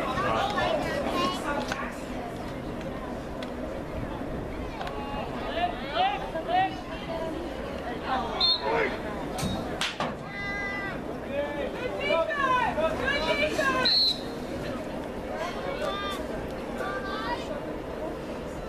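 A crowd of people shouts and cheers outdoors.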